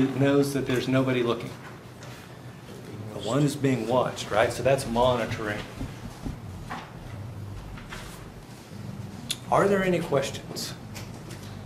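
A man lectures in a room with slight echo, speaking clearly with pauses.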